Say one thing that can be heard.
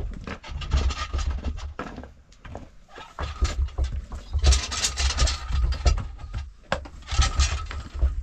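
A wooden rake scrapes over loose soil and gravel.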